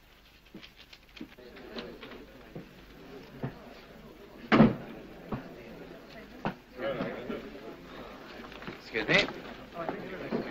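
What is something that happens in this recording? Several men talk over one another nearby.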